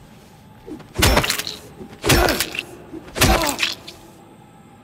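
Heavy blows of a metal pipe thud hard against something soft on the floor.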